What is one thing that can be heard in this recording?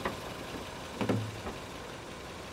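Car doors open with a click.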